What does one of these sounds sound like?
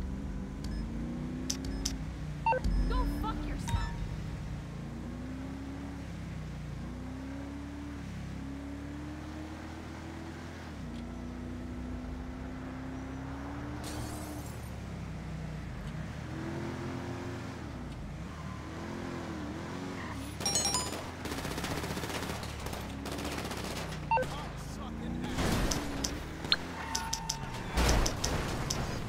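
A phone beeps with short menu clicks.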